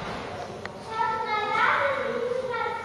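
A young monkey squeals in high, repeated cries.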